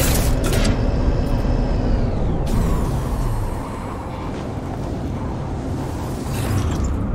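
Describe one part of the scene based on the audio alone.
A fierce storm wind roars and howls.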